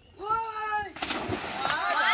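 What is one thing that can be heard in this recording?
Water splashes loudly in a small pool.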